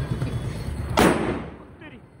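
A firecracker bangs sharply.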